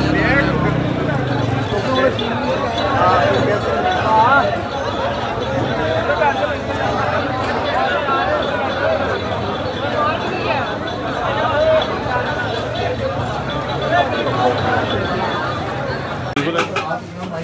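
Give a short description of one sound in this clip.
A large crowd chatters outdoors in a busy street.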